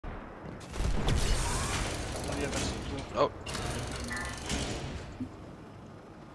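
A futuristic rifle fires rapid shots with booming blasts.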